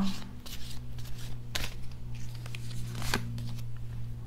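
Cards shuffle and rustle in a woman's hands.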